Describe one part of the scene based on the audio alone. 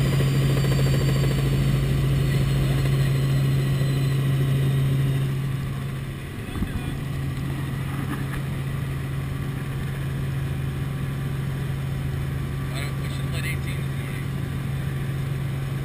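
A helicopter's engine and rotor drone loudly and steadily from inside the cabin.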